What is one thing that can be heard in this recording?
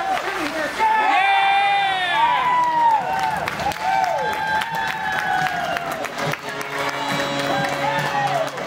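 A crowd cheers loudly after a goal.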